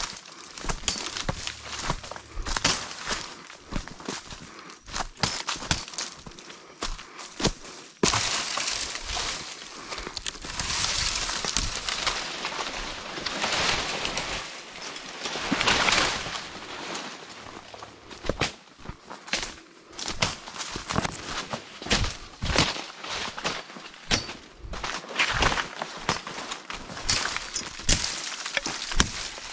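Footsteps crunch on dry leaves and twigs along a dirt path.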